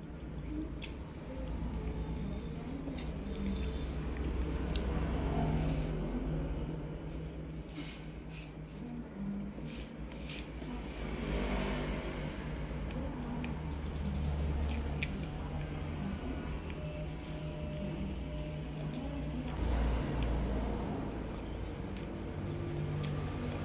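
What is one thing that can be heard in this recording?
A woman chews soft cake close to a microphone with wet, squishy sounds.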